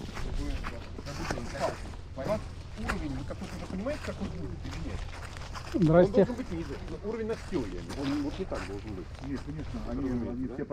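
Men talk calmly nearby outdoors.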